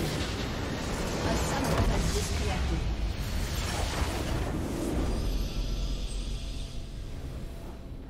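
A huge crystal explodes with a deep rumbling blast.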